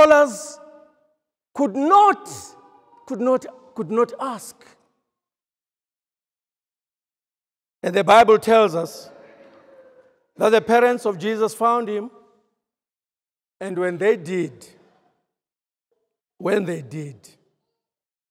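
A man preaches over a loudspeaker in a large echoing hall, speaking in bursts with pauses.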